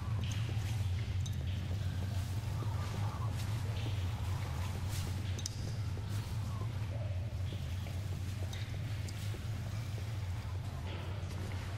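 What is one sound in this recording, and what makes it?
Footsteps tap steadily as a character walks over rocky ground.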